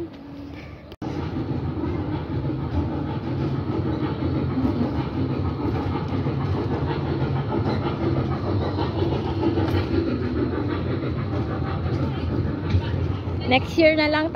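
A small ride-on train's engine hums steadily as it rolls past.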